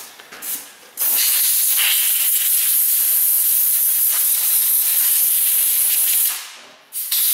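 Compressed air hisses loudly from a blow gun.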